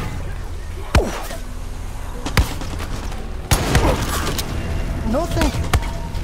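Rifle shots crack loudly and echo.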